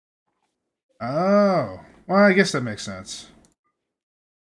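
A young man speaks briefly and with animation into a microphone.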